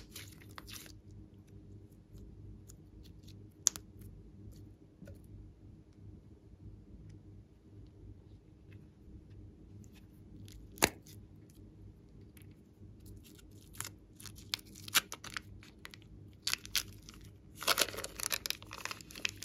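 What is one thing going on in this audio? Soft slime squishes and squelches between fingers.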